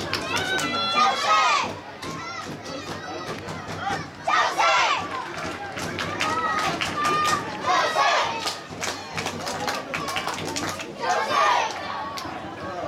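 Young women shout loudly to each other across an open field outdoors.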